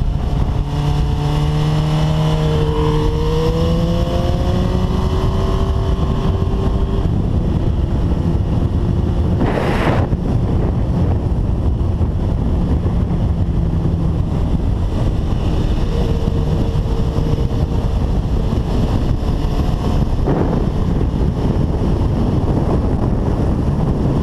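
Wind rushes and buffets loudly.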